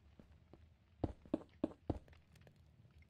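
Dull thuds sound as a block-game character punches a wall.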